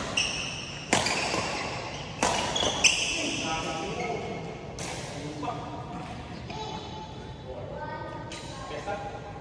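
Badminton rackets smack a shuttlecock back and forth, echoing in a large hall.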